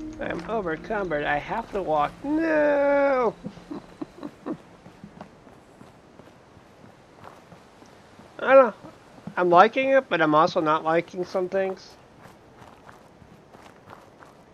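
Footsteps crunch on gravel and pavement.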